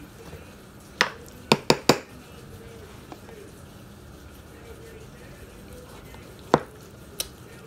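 A metal spoon knocks and clinks against a bowl.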